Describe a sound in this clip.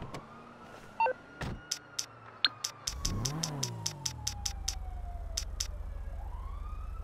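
A phone's buttons click rapidly.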